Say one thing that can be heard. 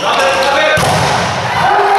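A volleyball is spiked hard with a sharp slap.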